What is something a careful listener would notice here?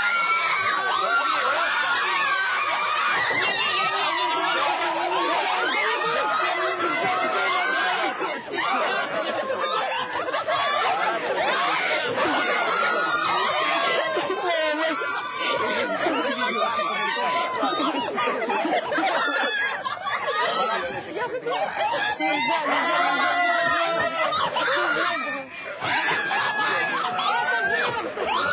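Young men and women shout excitedly nearby.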